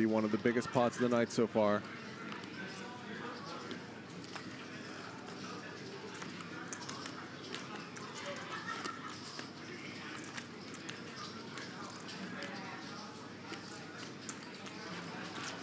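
Poker chips click and clatter together.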